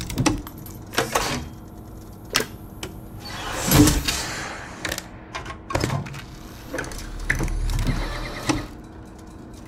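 A mechanical knob clicks and whirs as it turns.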